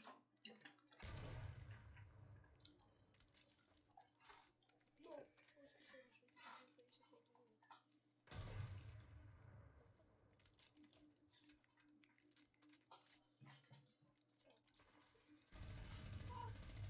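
A rifle fires sharp, booming shots that echo briefly.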